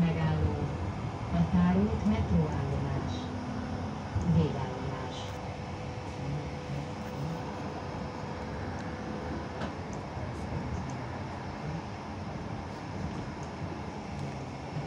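A tram rumbles steadily as it rolls along the tracks.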